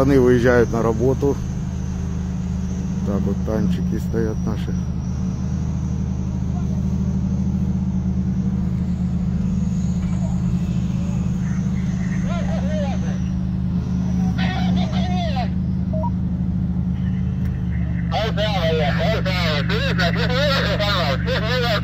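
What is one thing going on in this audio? A tank's diesel engine rumbles.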